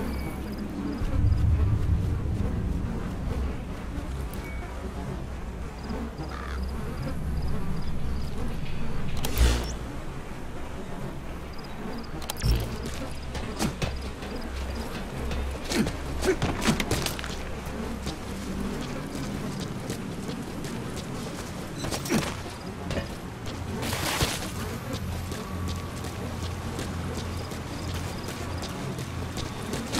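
Footsteps crunch softly on dirt and grass.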